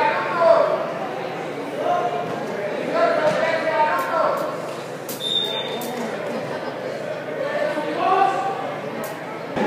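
A keyboard plays notes through loudspeakers.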